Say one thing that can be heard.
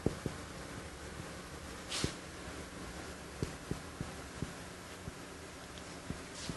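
A marker taps and scratches on a whiteboard.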